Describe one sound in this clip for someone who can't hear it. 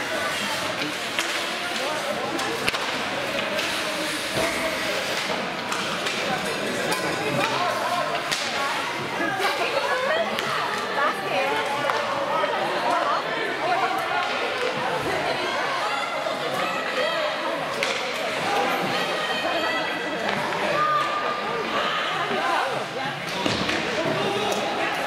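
A crowd of spectators chatters and calls out in a large echoing arena.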